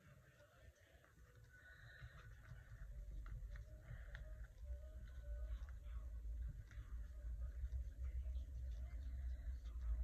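Hands rustle and tap on paper pages close by.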